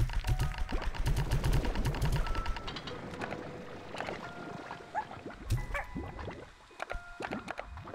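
Game sound effects chime and ping.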